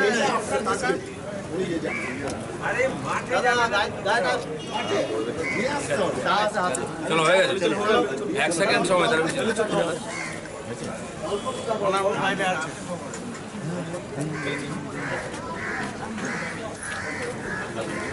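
Several men talk in the background, overlapping.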